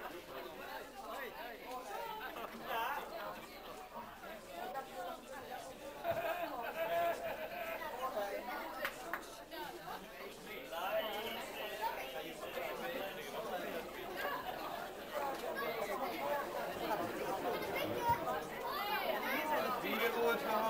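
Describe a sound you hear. Many elderly men and women chatter at once in a busy room.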